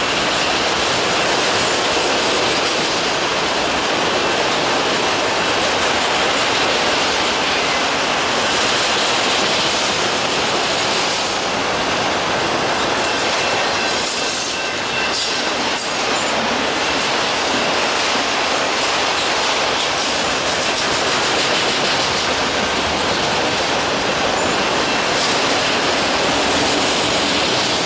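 A long freight train of autorack cars rolls past close by, its steel wheels rumbling on the rails.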